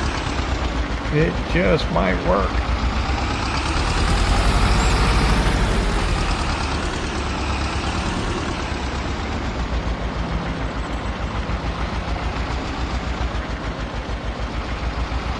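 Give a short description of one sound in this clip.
A tractor engine chugs steadily as it drives along.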